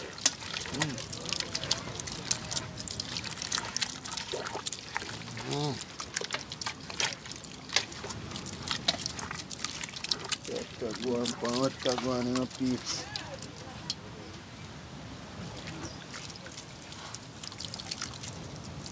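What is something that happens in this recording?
A hand squishes and squelches through wet crushed tomatoes in a metal pot.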